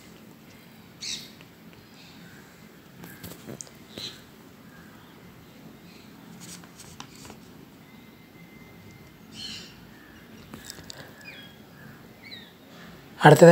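Small finches chirp softly.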